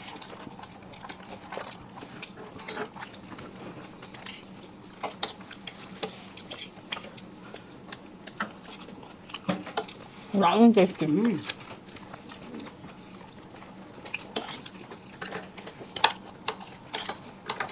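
Forks clink and scrape against plates.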